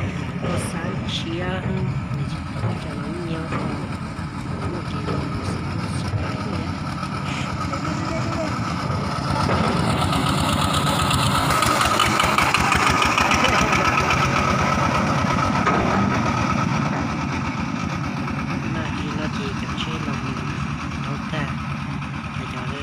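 A small tractor engine chugs steadily and loudly nearby.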